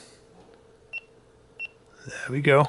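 A handheld airband radio's keypad beeps as buttons are pressed.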